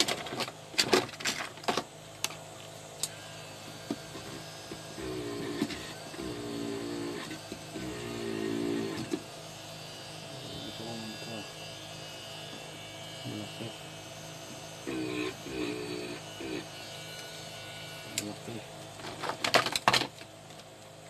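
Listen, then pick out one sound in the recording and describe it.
A circuit board clicks and knocks as hands handle it on a hard surface.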